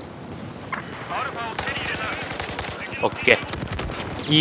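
Gunfire rattles in short, sharp bursts.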